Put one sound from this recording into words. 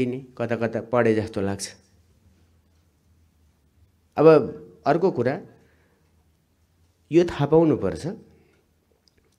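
A middle-aged man speaks forcefully into a microphone, pausing between phrases.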